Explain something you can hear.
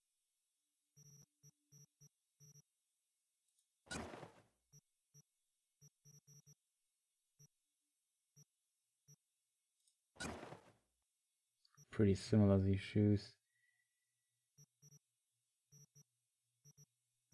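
Soft menu blips tick again and again as a cursor moves between items.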